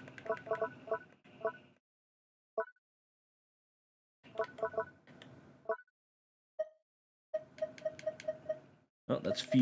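Short soft game menu blips sound as items are selected.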